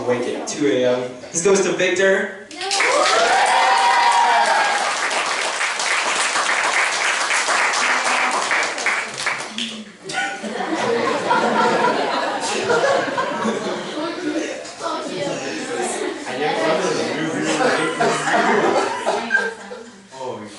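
A teenage boy speaks through a microphone into a room.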